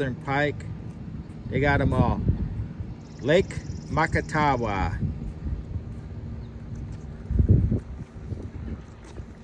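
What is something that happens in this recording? A person's footsteps tap softly on a paved path.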